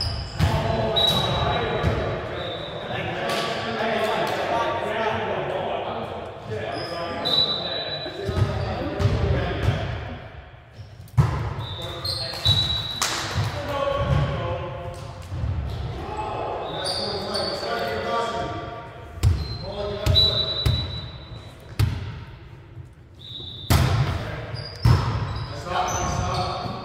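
Young men talk and call out to each other in a large echoing hall.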